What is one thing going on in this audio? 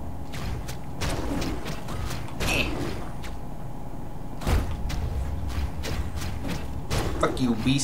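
Electronic music with a deep bass beat plays steadily.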